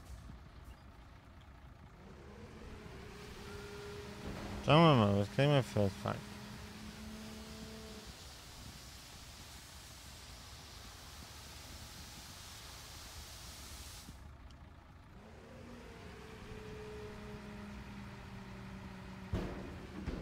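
A truck engine idles with a low steady hum.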